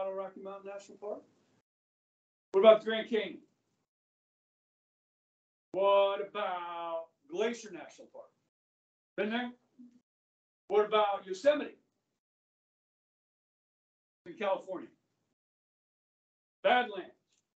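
A middle-aged man speaks loudly and with animation, in short bursts with pauses, close by.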